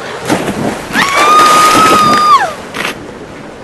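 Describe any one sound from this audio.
A game monster lets out a long, high electronic cry that drops away at the end.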